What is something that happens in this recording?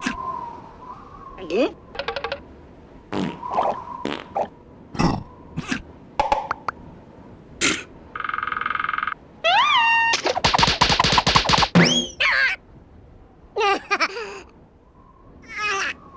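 Small cartoon creatures chatter and squeal in high, silly voices.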